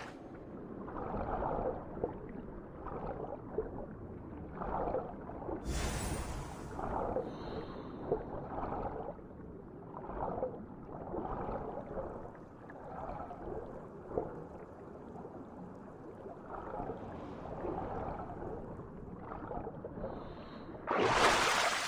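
Muffled underwater strokes pulse in slow, regular surges.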